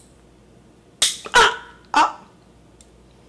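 A young man close by makes loud straining noises and exclaims.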